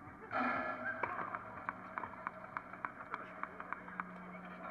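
A tennis ball bounces repeatedly on a hard court.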